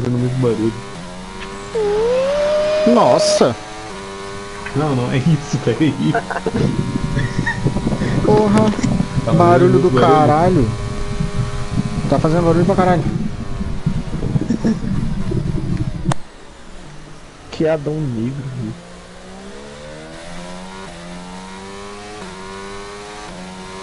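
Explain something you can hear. A racing car engine roars steadily, rising and falling in pitch.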